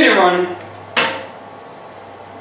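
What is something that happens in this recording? A sharp metal clank rings out once.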